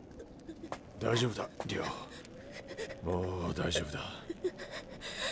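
A man speaks softly and reassuringly.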